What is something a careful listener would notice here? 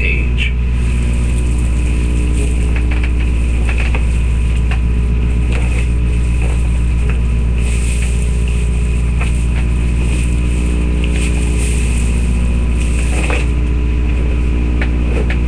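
A balloon squeaks and rubs under a hand close to the microphone.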